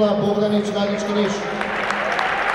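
A crowd cheers.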